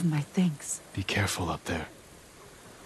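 A man answers in a low, calm voice.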